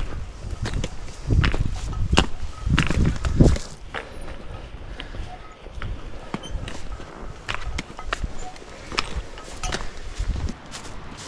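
Trekking poles click and tap against stones.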